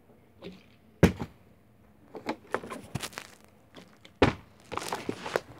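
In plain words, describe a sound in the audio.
A plastic bottle thuds onto a carpeted floor.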